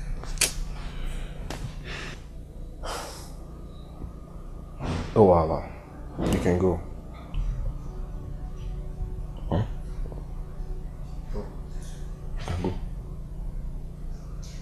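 A second man answers in a low, upset voice, close by.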